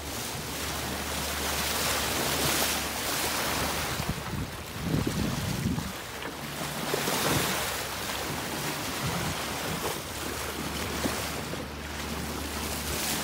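Water rushes and splashes along the hull of a moving boat.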